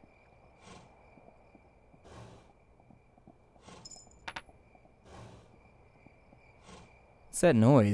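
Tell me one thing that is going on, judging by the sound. A horse's hooves thud in soft, regular bursts.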